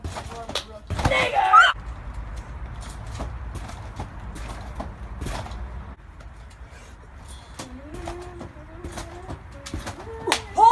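A teenage boy shouts with excitement close by.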